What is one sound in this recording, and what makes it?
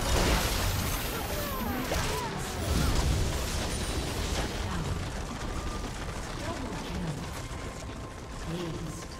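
Spells and weapon blows crash and whoosh in a fast, noisy game battle.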